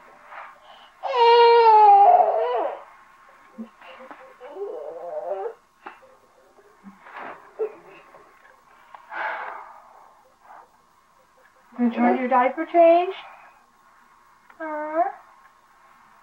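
A small child whines and babbles.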